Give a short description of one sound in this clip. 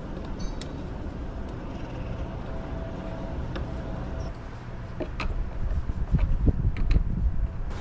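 A screwdriver scrapes and clicks against a small metal fitting.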